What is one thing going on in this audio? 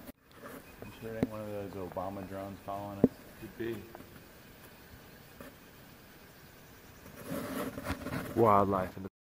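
A raven croaks loudly several times.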